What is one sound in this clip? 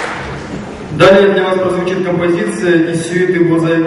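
A young man speaks clearly into a microphone over loudspeakers in a large hall.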